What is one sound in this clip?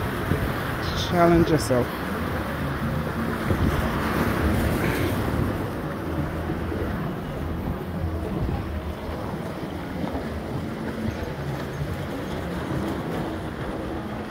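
Small waves wash and splash against rocks.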